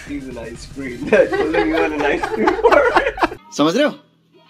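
A woman laughs.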